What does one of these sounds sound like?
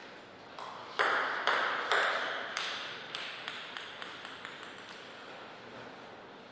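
A player bounces a ping pong ball on a table before serving.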